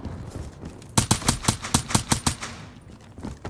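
A suppressed gun fires a rapid burst of shots.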